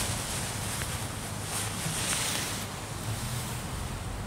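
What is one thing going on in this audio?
Nylon fabric rustles as it is handled.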